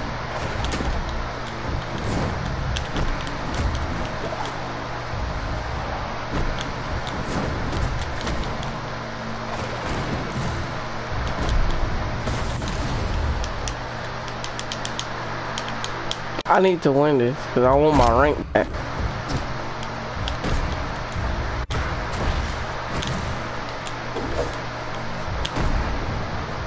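Sound effects of hits and swooshes play in a video game fight.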